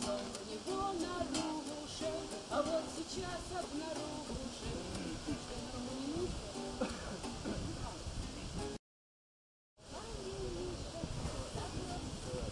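An acoustic guitar is strummed close by.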